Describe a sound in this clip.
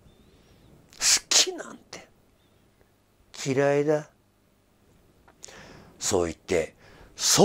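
An older man speaks calmly and closely into a microphone, with pauses.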